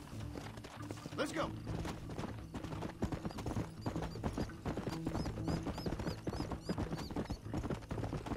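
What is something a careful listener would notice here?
Horse hooves thud rapidly on a dirt trail.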